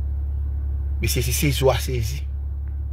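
A man speaks briefly close to the microphone.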